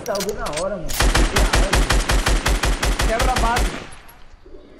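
Gunfire rattles in a rapid burst of shots.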